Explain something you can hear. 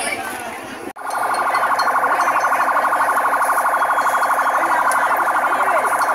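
A fire truck siren wails loudly and steadily nearby.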